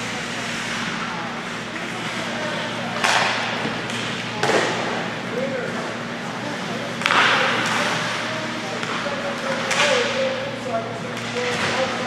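Hockey sticks clack against a puck.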